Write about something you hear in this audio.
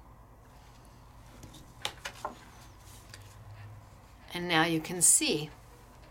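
A sheet of paper rustles as it is lifted and handled.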